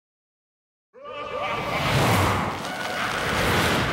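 A fiery explosion roars.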